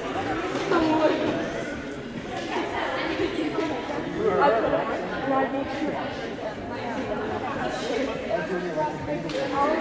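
Young women chatter and call out in a large echoing hall.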